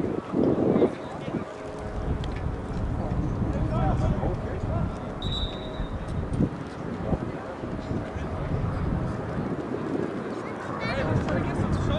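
Wind rumbles steadily across an open outdoor space.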